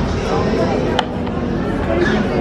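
A plastic tray clatters onto a metal table.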